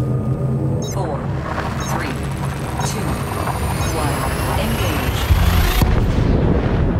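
A spaceship's jump drive charges up with a rising whoosh and then roars.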